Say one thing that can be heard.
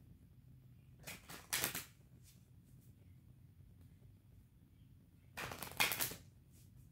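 Hands rub and rustle together in short bursts.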